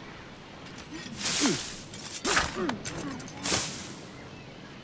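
Hay rustles and crunches loudly in a brief scuffle.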